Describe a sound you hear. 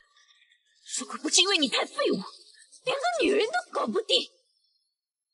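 A young woman speaks mockingly, close by.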